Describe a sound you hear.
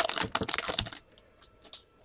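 Cards and plastic wrappers rustle and crinkle close by.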